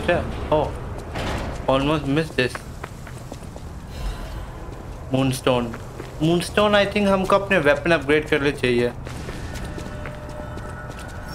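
Footsteps hurry over cobblestones.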